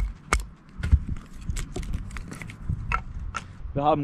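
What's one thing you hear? Split wood pieces clatter together.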